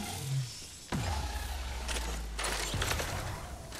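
A zipline whirs steadily as someone slides along it.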